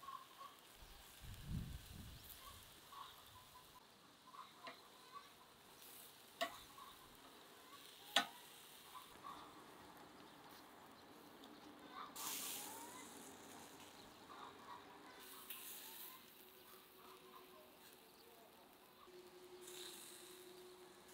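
Charcoal crackles and pops under a grill.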